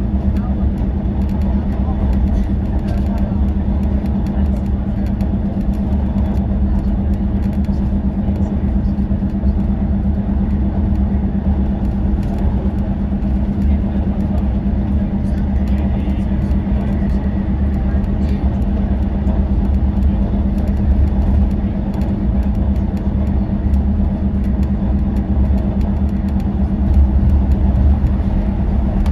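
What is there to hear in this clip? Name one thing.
A vehicle's engine hums steadily as it cruises along a motorway.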